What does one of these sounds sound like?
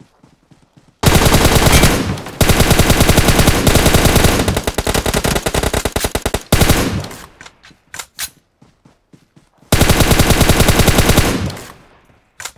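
Rapid automatic gunfire rattles loudly in bursts.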